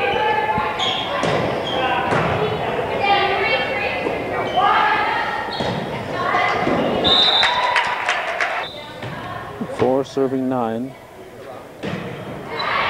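A volleyball smacks against hands and arms.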